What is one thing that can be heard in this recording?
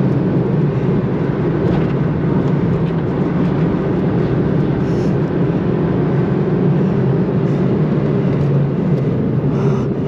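A car engine drones steadily from inside the cabin at speed.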